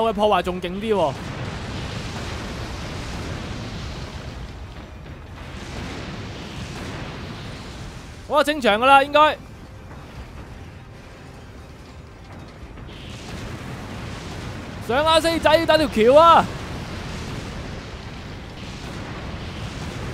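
Explosions boom and crackle in quick bursts.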